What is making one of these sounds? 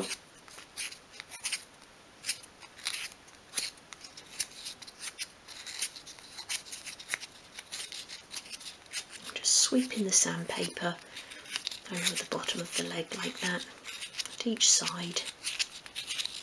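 Small wooden sticks click and tap against each other.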